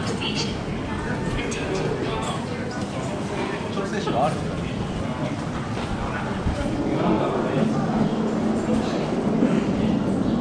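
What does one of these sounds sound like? A crowd of people murmurs and chatters indoors.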